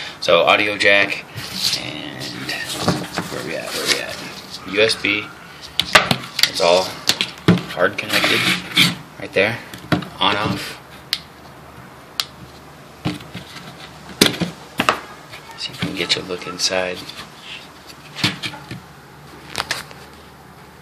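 A plastic canister knocks and rattles as it is handled.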